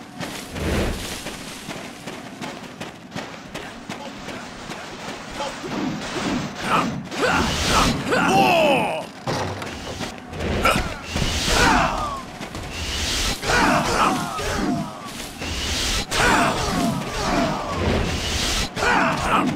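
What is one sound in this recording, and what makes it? Swords clash and slash in a noisy battle.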